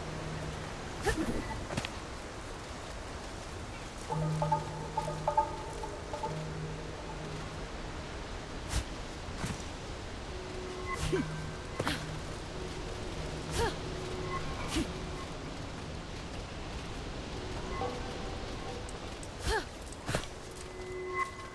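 Hands grip and scrape on rock during a climb, with short knocks.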